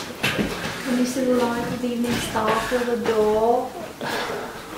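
A woman speaks in a slow, drawn-out voice nearby.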